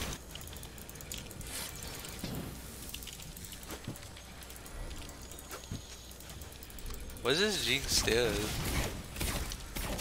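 Magic effects whoosh and crackle during a video game fight.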